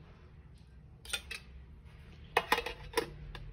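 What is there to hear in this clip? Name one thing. A metal tin clinks as a hand picks it up.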